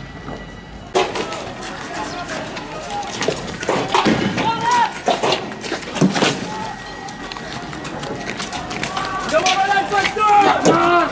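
Young men shout and yell loudly nearby.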